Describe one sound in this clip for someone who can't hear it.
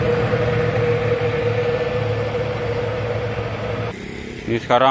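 A motorbike engine hums.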